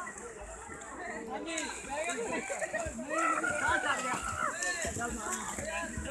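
A swimmer splashes through the water with arm strokes.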